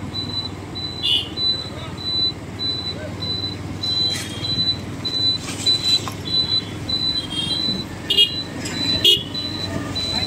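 Horns honk briefly in nearby traffic.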